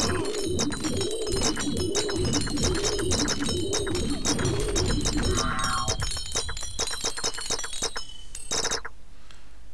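A magic spell crackles and hums with a rhythmic pulsing.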